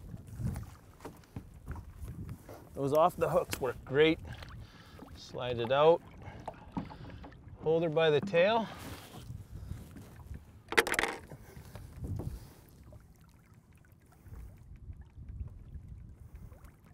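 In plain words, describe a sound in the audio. Water splashes against the side of a boat.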